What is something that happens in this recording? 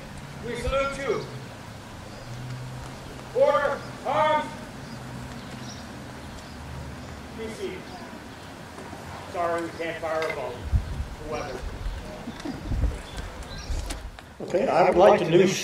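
A man speaks slowly with pauses, heard through a loudspeaker outdoors.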